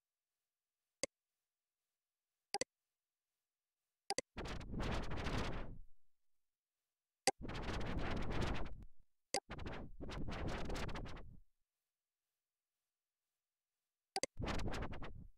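Short sharp clicks sound now and then.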